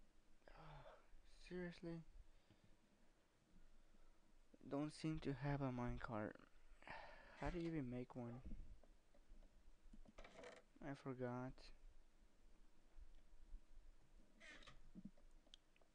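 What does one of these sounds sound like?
A wooden chest creaks open and shut.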